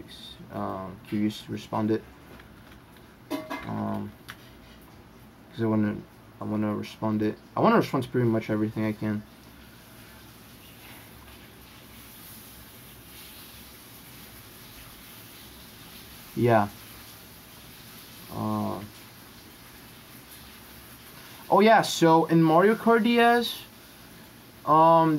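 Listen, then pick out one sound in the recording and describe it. A young man talks calmly into a close microphone, in bursts with pauses.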